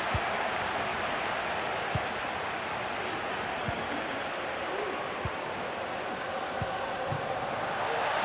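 A football is kicked with dull thumps.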